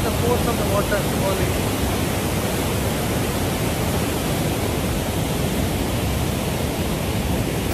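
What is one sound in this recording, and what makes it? A middle-aged man speaks calmly close to a microphone.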